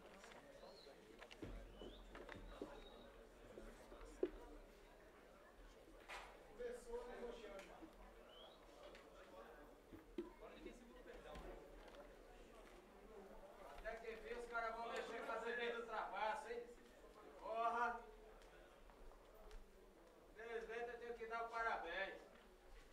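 A crowd of men and women chatters in a large echoing hall.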